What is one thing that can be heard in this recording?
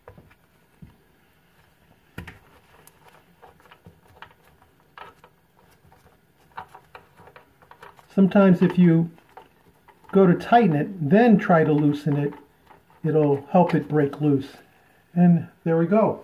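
A gloved hand scrapes and taps lightly against a hard, smooth surface.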